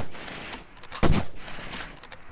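A rifle fires a single sharp, loud shot.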